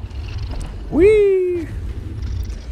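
A dragon lets out a shrill screech.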